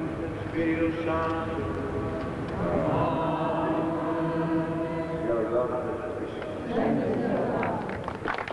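A group of men sings together.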